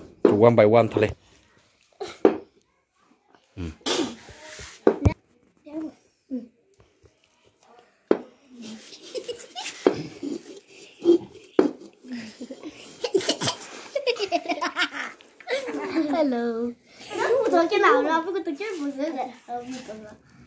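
Young boys talk and laugh excitedly close by.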